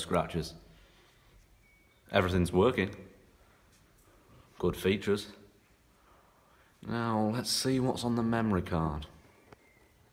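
A young man speaks calmly and close by, in short bursts with pauses.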